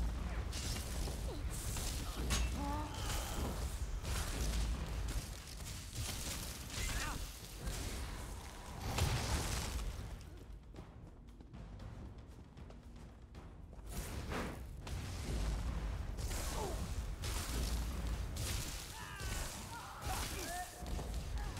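Magic spells blast with loud whooshes.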